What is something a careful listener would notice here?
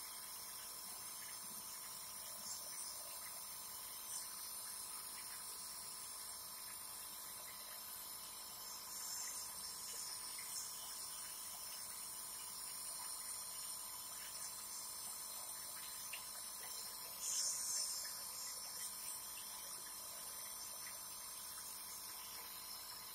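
A nebulizer compressor hums steadily.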